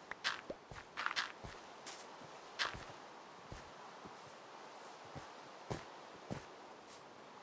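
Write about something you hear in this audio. Footsteps thud softly on grass and dirt.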